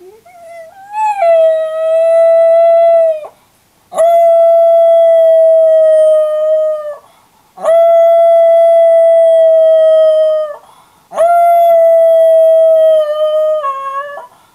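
A cat yowls loudly in long, drawn-out cries with short pauses between them.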